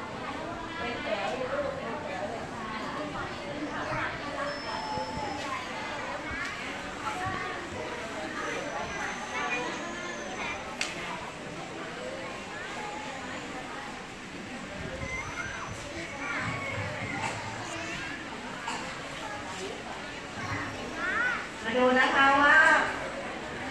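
Young children chatter and call out in a busy room.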